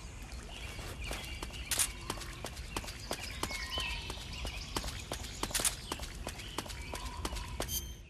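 Footsteps crunch through grass.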